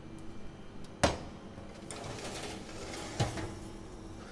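Metal trays clatter sharply as they slide onto oven racks.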